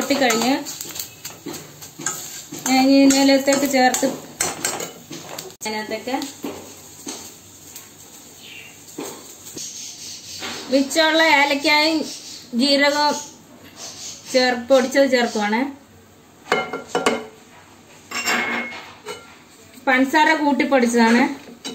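A metal spoon scrapes and stirs inside a metal pan.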